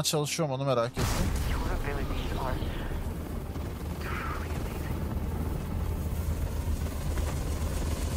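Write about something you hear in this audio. A deep roaring rumble of rushing water churns steadily.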